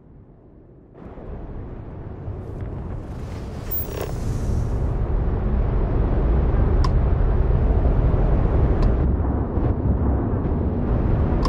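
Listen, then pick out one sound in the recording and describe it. A spaceship's engines roar steadily and grow louder.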